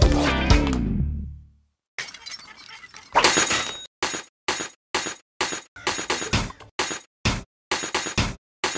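Upbeat electronic music plays in short, choppy bursts.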